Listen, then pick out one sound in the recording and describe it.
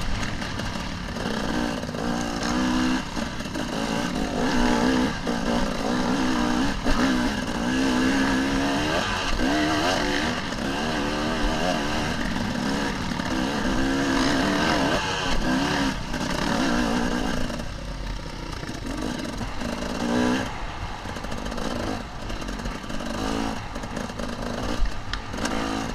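A dirt bike engine revs and changes pitch up close as it rides.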